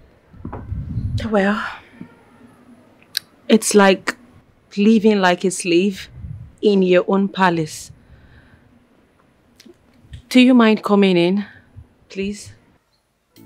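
A young woman speaks in a pleading, upset voice, close by.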